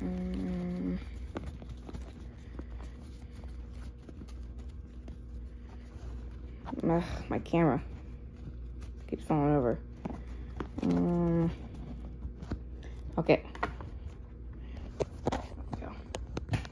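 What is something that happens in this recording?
Trading cards rustle and click as hands flip through a stack.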